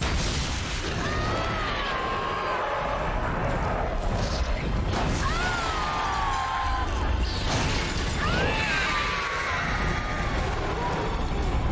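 A huge creature lets out long, wavering shrieks.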